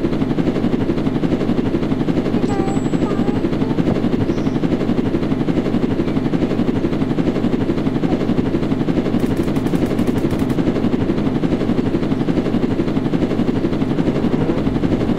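A helicopter's rotor chops steadily and loudly.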